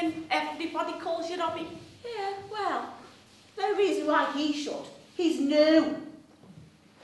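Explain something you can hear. Young women talk with animation in an echoing hall.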